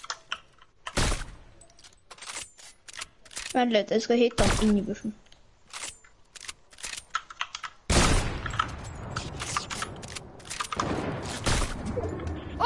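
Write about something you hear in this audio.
A rifle fires loud single shots, one at a time.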